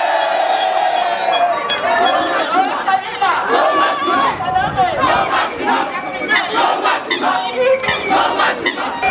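A crowd of men and women chants and shouts loudly outdoors.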